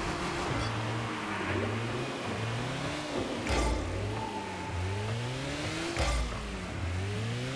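A car engine hums and revs up and down.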